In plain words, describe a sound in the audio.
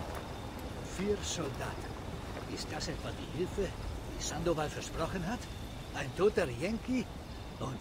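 A man speaks in a low, calm voice close by.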